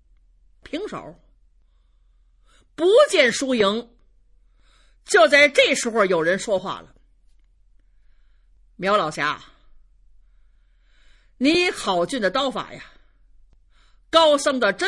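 A middle-aged woman tells a story with animation, in short bursts, close to a microphone.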